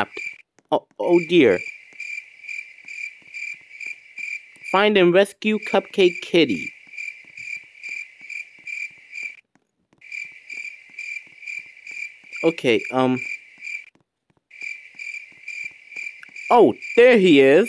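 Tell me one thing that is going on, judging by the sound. Footsteps patter quickly and evenly.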